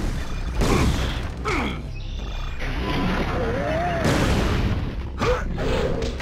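Game combat effects whoosh and thud in bursts.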